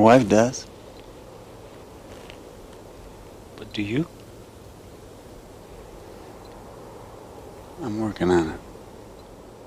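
A man speaks quietly in short phrases nearby.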